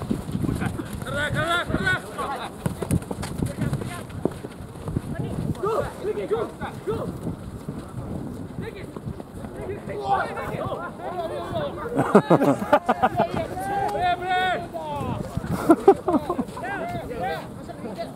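Young men shout and call to each other outdoors across an open field.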